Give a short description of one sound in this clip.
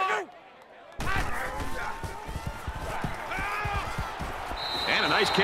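Football pads thud and clash as players collide.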